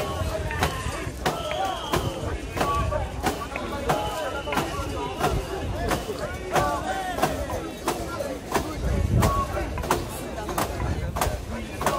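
A large crowd of men and women chants loudly and rhythmically outdoors.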